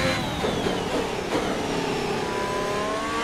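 A racing car engine drops in pitch as the car slows.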